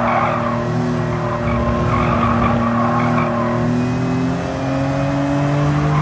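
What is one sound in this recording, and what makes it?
A straight-six sports car engine runs through a bend, then rises in pitch as it accelerates.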